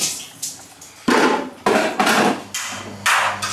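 Plastic containers clatter as they are stacked.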